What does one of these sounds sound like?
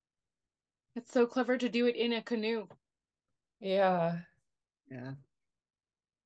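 A young woman speaks over an online call.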